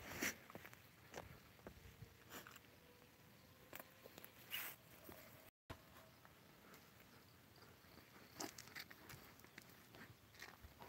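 A dog rolls and scuffs on a rough path nearby.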